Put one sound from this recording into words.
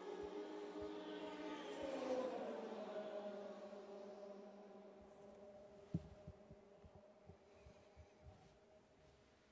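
A race car engine whines loudly as it speeds past and fades into the distance.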